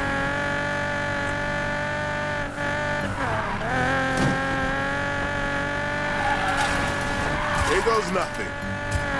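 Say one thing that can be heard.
A car engine roars at high revs throughout.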